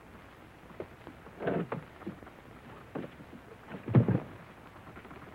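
Men scuffle, with heavy thuds and bumps.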